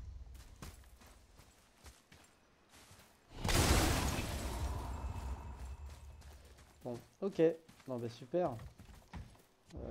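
Heavy footsteps crunch on dirt and wooden planks.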